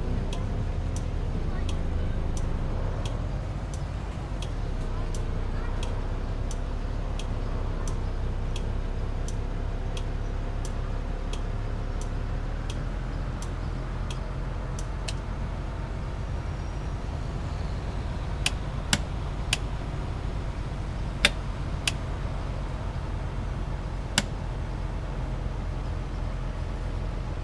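A bus engine rumbles at low revs.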